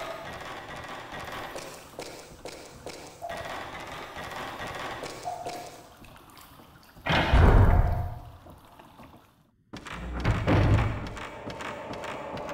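Footsteps tread slowly on a hard wooden floor.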